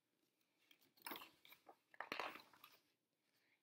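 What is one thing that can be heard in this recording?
A book's paper page rustles as it turns.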